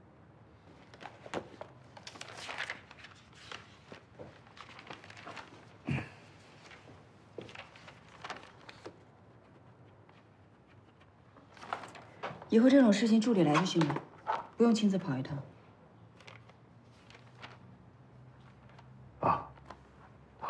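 Paper pages rustle and turn.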